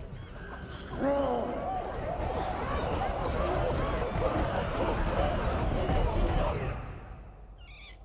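A large crowd of apes hoots and roars together.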